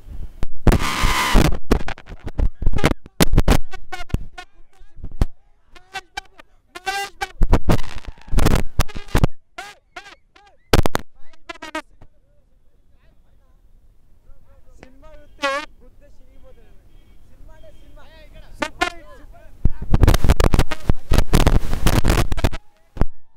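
A crowd of young men cheers and shouts outdoors.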